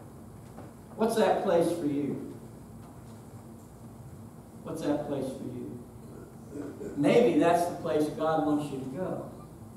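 A middle-aged man speaks with animation, pausing between phrases.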